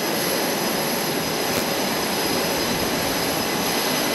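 Jet engines roar and whine steadily nearby.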